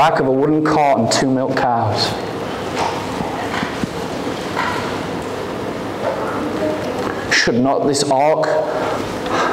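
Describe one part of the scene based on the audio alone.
A young man speaks calmly into a microphone in a large echoing hall.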